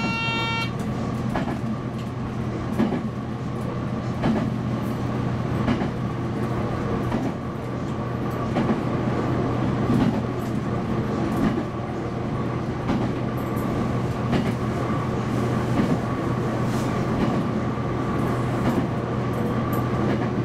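Train wheels clack over rail joints at an uneven pace.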